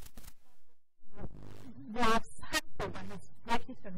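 A woman talks calmly into a microphone.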